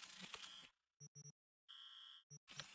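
Short electronic beeps chirp in quick succession.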